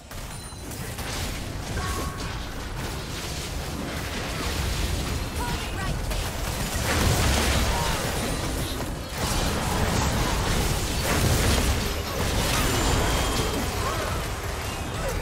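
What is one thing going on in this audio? Spell effects crackle and whoosh in a busy game battle.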